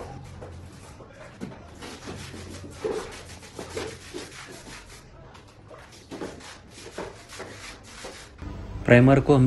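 A brush scrubs and slaps thick liquid across a hard floor.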